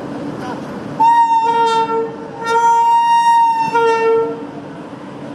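A locomotive horn blares loudly in long blasts.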